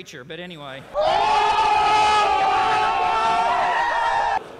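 Young men shout loudly outdoors.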